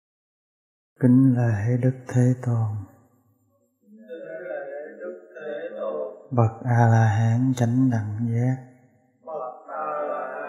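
A man chants slowly and calmly close by.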